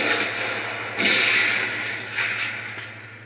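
Sniper rifle shots crack and echo in a video game.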